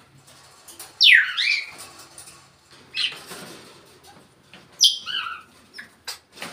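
A parrot whistles and squawks loudly nearby.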